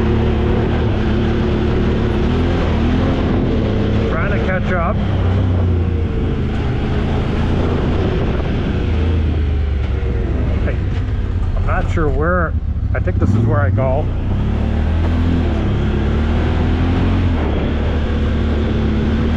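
Tyres crunch over a bumpy dirt trail.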